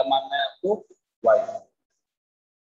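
A man speaks calmly, as if explaining a lesson.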